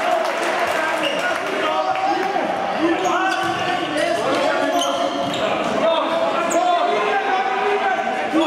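A ball thumps on a wooden floor.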